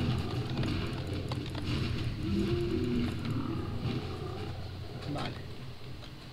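Blows and clashing weapons sound in a fight.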